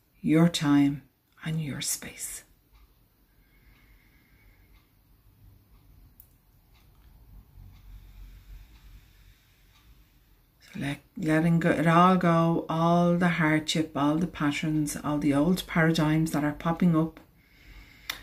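A middle-aged woman speaks calmly and close to the microphone, pausing now and then.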